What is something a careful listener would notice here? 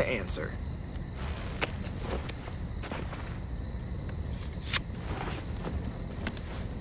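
Playing cards shuffle and flick.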